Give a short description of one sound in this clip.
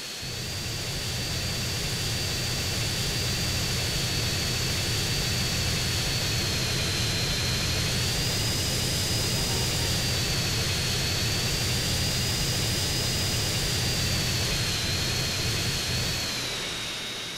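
A jet engine roars loudly and steadily with a high whine.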